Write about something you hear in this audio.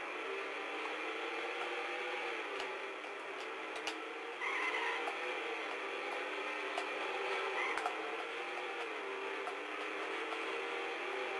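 Racing car engines drone steadily with shifting pitch.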